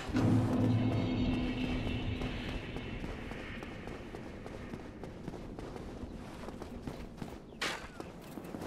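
Armoured footsteps run quickly over stone.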